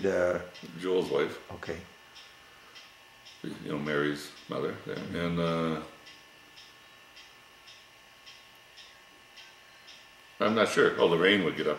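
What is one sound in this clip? An elderly man talks calmly, close by, with pauses.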